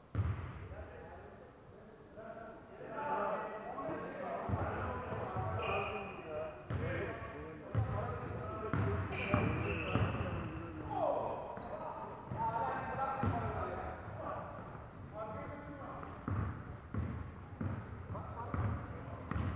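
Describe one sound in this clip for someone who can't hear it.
Basketball players call out to each other in a large echoing hall.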